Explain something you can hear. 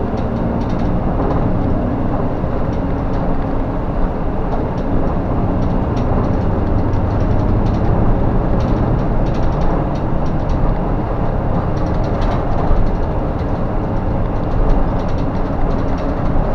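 Loose parts inside a bus rattle and click.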